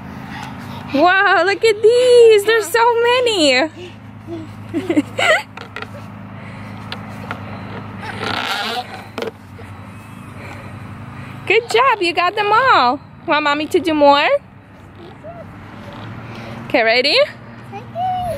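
A toddler squeals and babbles excitedly close by.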